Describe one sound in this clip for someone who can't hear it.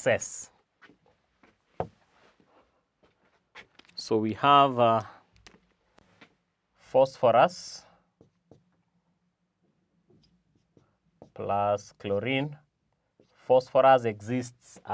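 A man speaks calmly and clearly, lecturing in short phrases.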